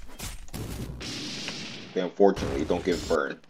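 A fiery blast bursts with a whoosh.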